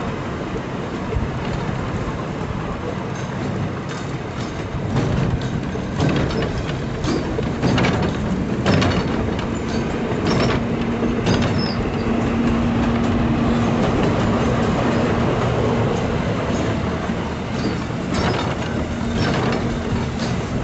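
A small train rumbles steadily along the rails.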